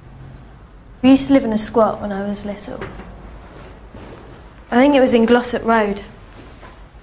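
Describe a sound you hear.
A young woman speaks loudly nearby.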